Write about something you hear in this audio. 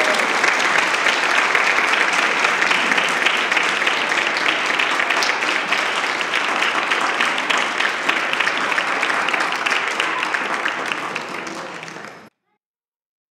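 A small group of people applauds in an echoing room.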